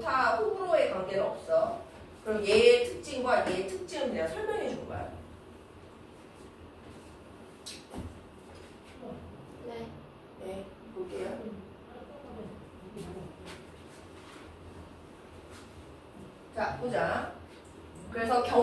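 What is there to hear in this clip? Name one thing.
A young woman speaks clearly and steadily, explaining, in a room with a slight echo.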